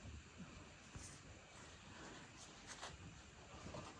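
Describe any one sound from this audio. Flatbread wraps rustle softly as they are set on a plate.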